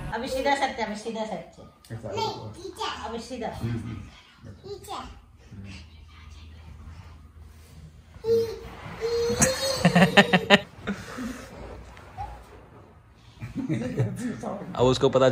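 A small child giggles and squeals.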